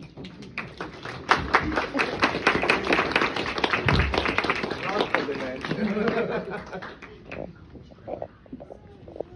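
A crowd of men and women cheers and chatters nearby.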